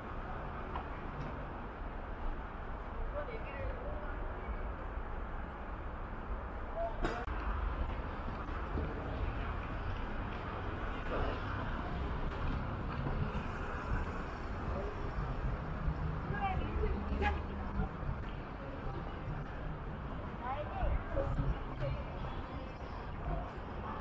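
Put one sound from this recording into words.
People chatter in the distance.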